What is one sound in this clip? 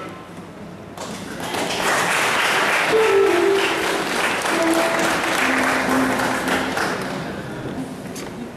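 A crowd applauds loudly.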